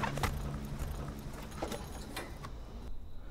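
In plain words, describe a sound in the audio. Shoes scrape and scuff against a brick wall.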